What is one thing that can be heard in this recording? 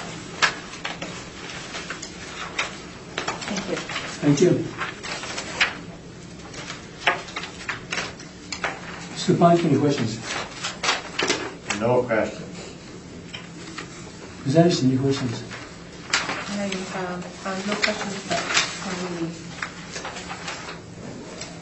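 Paper rustles and shuffles on a table.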